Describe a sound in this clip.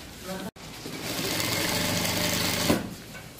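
A sewing machine runs, stitching rapidly.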